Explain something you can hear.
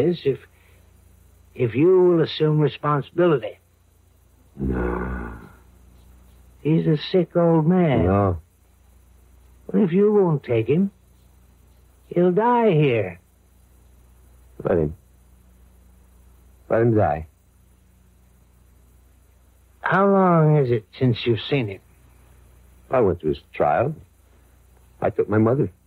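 A radio plays in bursts through a small, boxy speaker.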